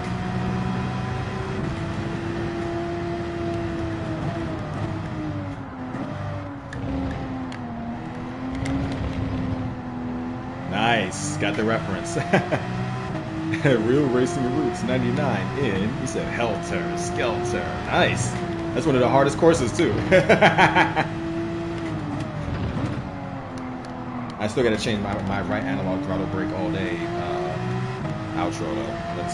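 A racing car engine roars, its pitch rising and dropping as the gears shift.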